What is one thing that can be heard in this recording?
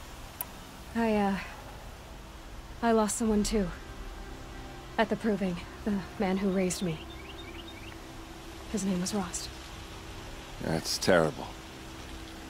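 A young woman speaks calmly and softly.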